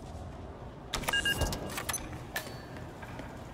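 A heavy door clicks open and swings shut.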